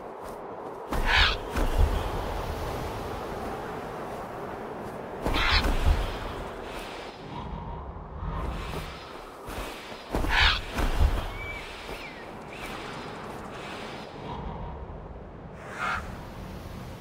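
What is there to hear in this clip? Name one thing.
A large bird's wings flap in loud bursts.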